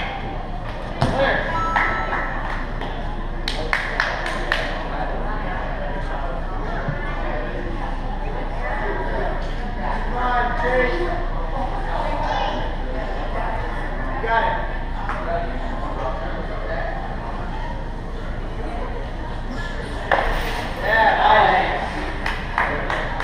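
A man lands with a thump on a padded mat.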